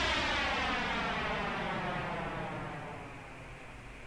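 An aircraft engine roars past and quickly fades into the distance.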